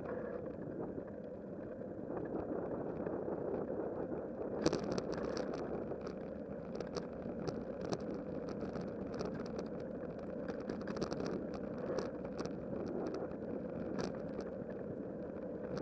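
Wind buffets past outdoors.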